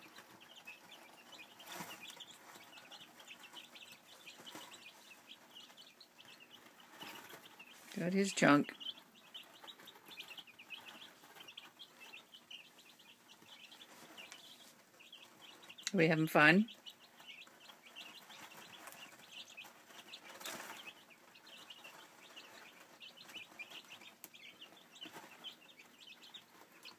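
Many young chicks peep and cheep constantly, up close.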